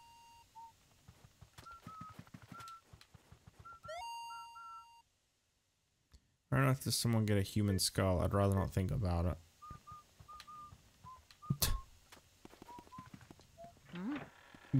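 Short electronic beeps chirp now and then.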